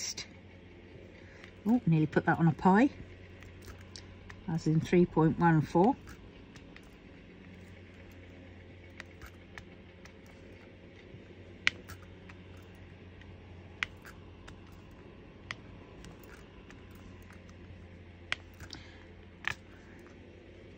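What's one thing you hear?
Small plastic beads click softly against a tray as they are picked up.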